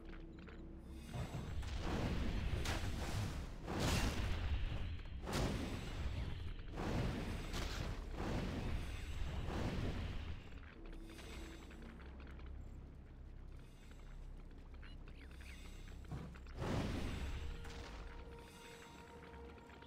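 Weapons clash and strike in a busy fantasy game battle.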